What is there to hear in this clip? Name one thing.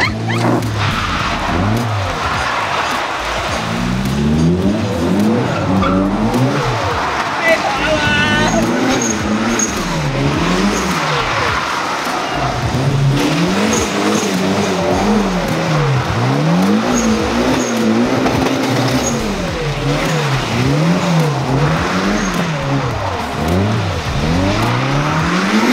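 A car engine revs hard, rising and falling over and over.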